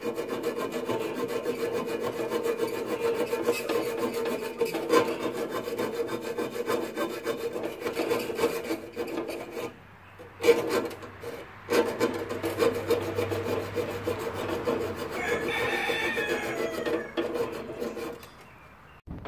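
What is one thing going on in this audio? Twine rustles and rubs as it is wound tightly around a metal rod.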